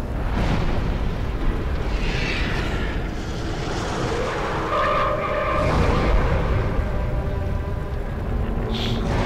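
Fire roars steadily.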